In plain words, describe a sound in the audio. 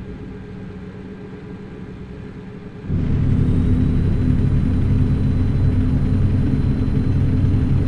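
A truck engine hums steadily and grows louder and deeper after a few seconds.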